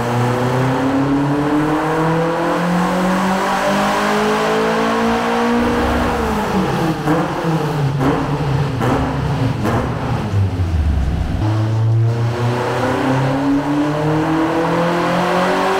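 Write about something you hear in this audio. A car engine roars at high revs, climbing in pitch over and over.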